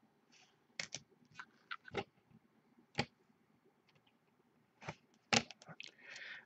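Plastic card cases tap and click softly against each other.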